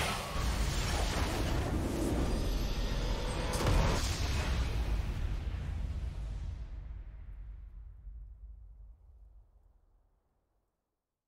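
A triumphant game fanfare plays loudly and slowly fades away.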